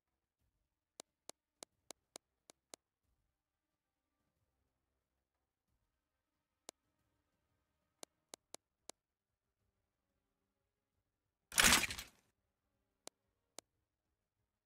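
Soft menu clicks tick in quick runs.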